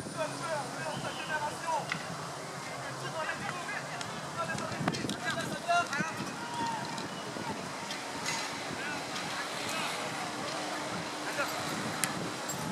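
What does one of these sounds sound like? Teenage boys shout and call out across an outdoor pitch.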